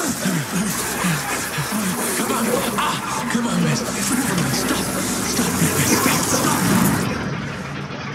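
A man shouts in distress, pleading loudly.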